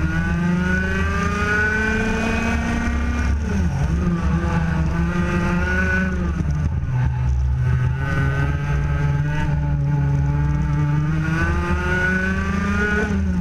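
A kart engine buzzes loudly close by, rising and falling in pitch as it speeds up and slows down.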